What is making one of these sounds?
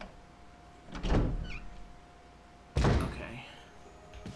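A heavy wooden door creaks open and thuds shut.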